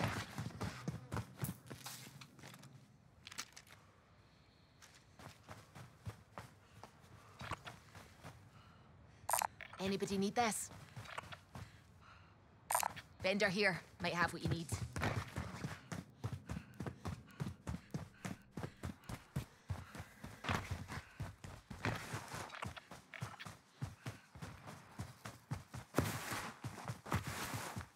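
Quick footsteps thud steadily on a hard floor.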